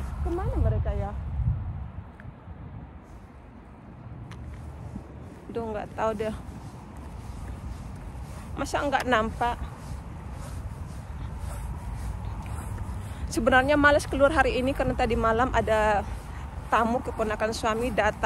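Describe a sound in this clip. A woman talks calmly close to a microphone.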